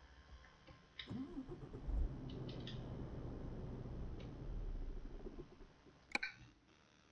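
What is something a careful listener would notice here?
A truck engine starts and hums steadily at idle.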